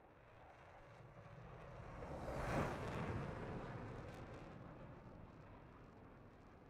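A twin-engine fighter jet roars past and fades away.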